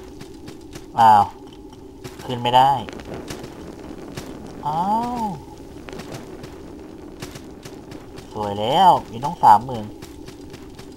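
A blade swishes through the air in quick swings.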